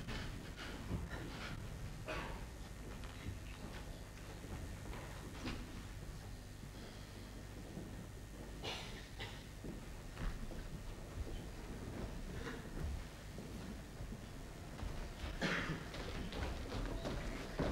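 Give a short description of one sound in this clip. A man speaks in short bursts.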